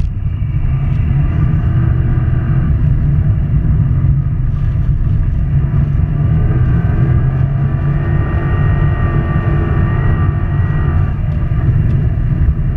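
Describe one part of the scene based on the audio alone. Studded tyres rumble and crunch over ice.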